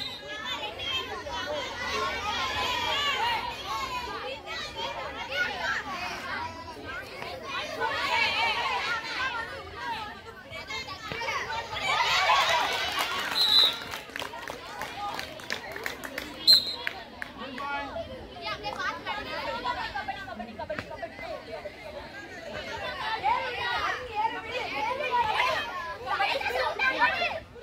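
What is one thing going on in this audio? Many young girls chant and call out together outdoors.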